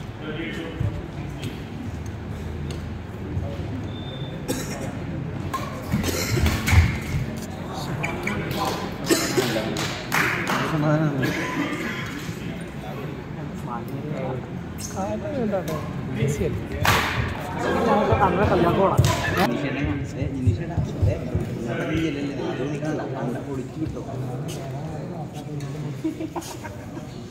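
Men chatter and call out in a large echoing hall.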